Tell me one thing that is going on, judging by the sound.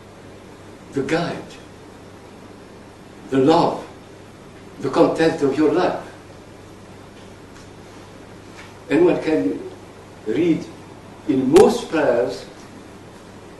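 An elderly man speaks slowly and calmly in short phrases, with pauses between them.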